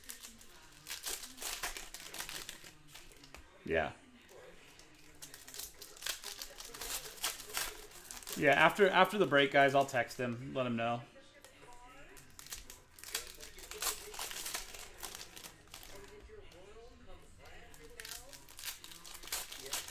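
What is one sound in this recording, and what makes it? Foil card packs crinkle and tear as hands open them.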